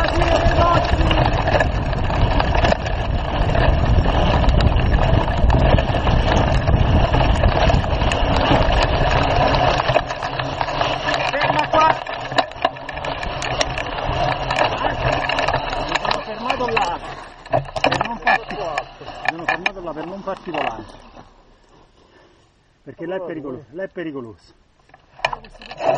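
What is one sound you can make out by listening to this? Knobby bicycle tyres crunch and roll over a dirt trail.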